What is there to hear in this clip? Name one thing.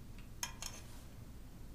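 Clothes hangers click and scrape along a metal rail.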